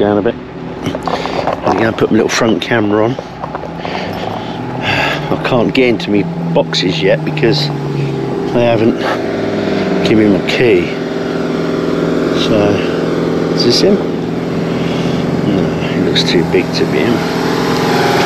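An older man talks close to a microphone, calmly and at length.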